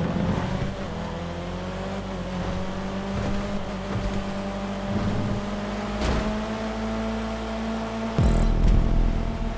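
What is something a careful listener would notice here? A racing car engine roars steadily at high speed, its pitch slowly rising.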